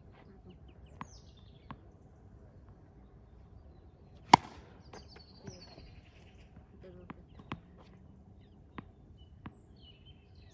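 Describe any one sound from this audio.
A tennis ball bounces on a hard court.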